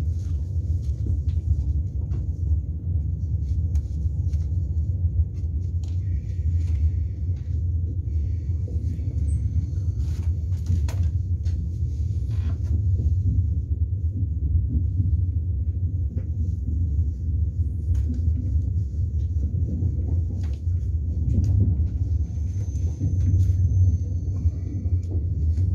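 A train rumbles steadily along its tracks, heard from inside.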